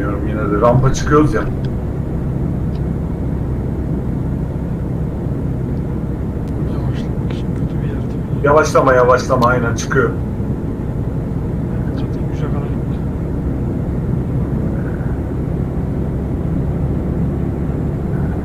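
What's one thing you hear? Tyres hum on a motorway.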